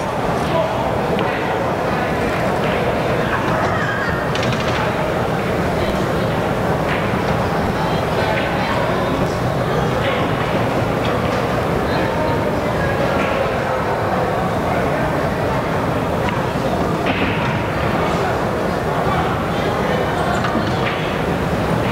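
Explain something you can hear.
Pool balls click together as they are struck.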